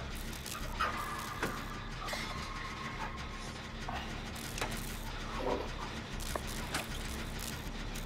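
A generator engine clicks and rattles.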